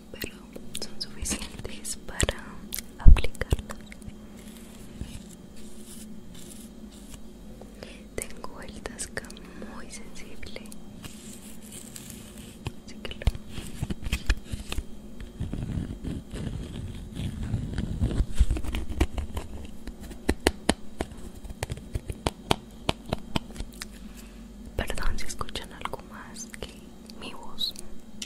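A young woman whispers softly and close to a microphone.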